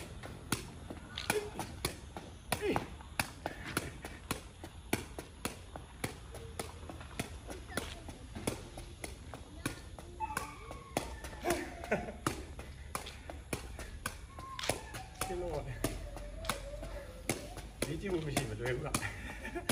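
A ball is kicked and bounces off a foot again and again with quick, soft thumps.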